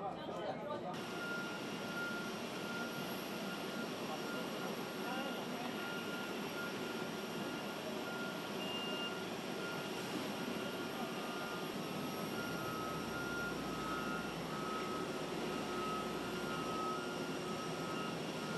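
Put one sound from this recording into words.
A minibus engine runs.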